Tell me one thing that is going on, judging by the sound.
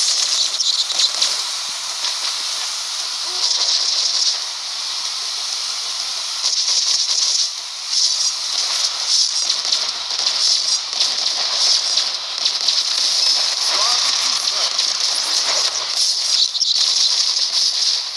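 Cartoonish weapon blasts fire again and again.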